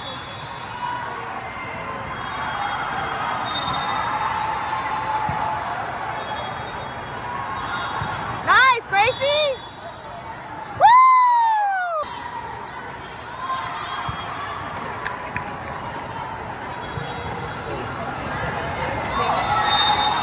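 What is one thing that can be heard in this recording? A crowd of spectators and players murmurs and calls out in a large echoing hall.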